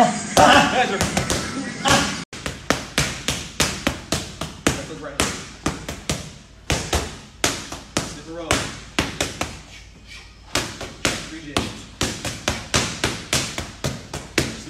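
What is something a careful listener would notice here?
Boxing gloves smack against focus mitts in quick combinations.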